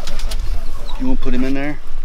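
A man speaks loudly outdoors.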